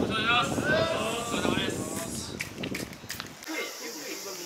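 A group of men chant and call out loudly outdoors.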